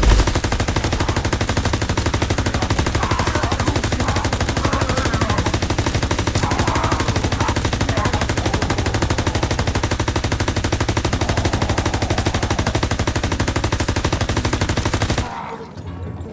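A machine gun fires rapid bursts.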